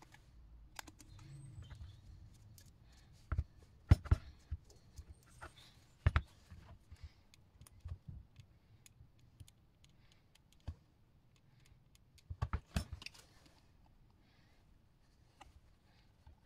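Paper crinkles and rustles between hands.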